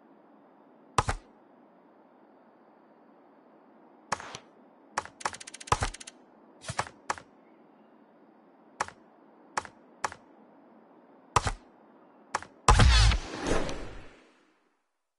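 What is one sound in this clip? Short menu clicks sound one after another.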